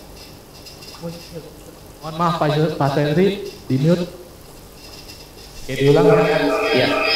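A man speaks calmly into a close microphone, heard through an online call.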